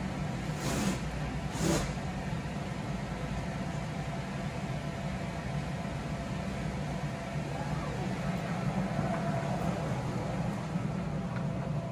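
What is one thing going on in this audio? A blower motor hums steadily.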